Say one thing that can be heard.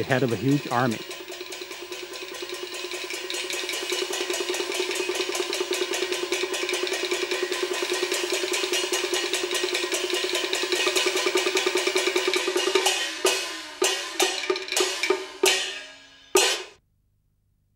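Percussion clatters in a fast, steady rhythm, then breaks into separate strikes.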